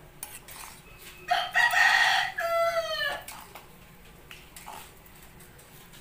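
A ladle scrapes and stirs in a pot.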